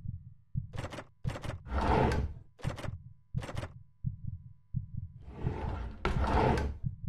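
A wooden drawer rattles and knocks as it is tugged.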